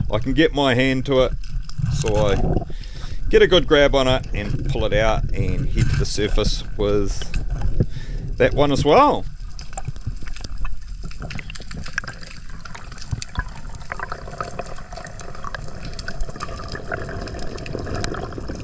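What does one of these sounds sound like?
Water swirls and rumbles low and muffled underwater.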